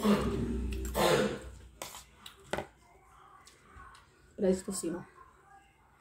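A woman chews food loudly close to the microphone.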